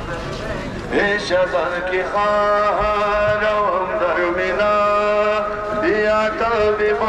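A man's voice sings a mournful chant loudly through a loudspeaker.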